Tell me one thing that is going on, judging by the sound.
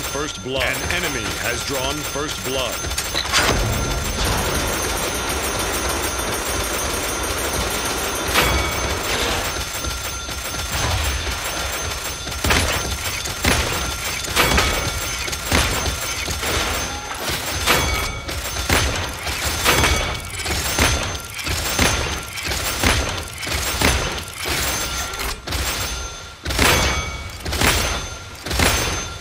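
An energy gun fires in rapid bursts.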